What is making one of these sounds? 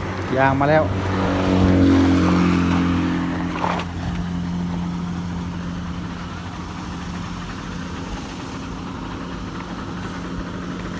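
A heavy truck engine rumbles steadily nearby.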